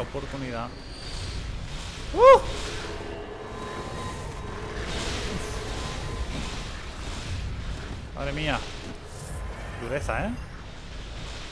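A creature lets out eerie warbling shrieks.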